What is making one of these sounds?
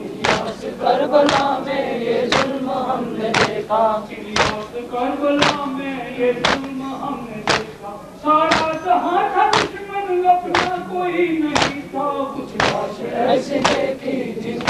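Men strike their chests in a slow, steady rhythm.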